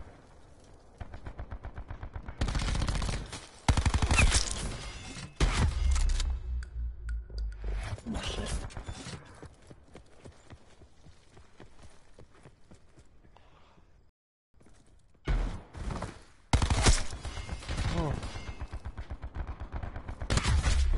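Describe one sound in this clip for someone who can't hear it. A rapid-firing gun shoots in fast bursts.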